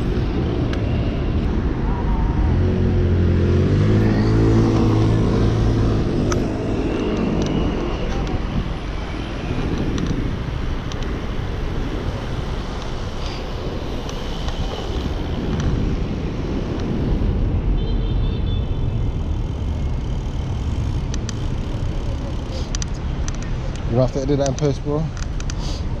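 Bicycle tyres whir on the road.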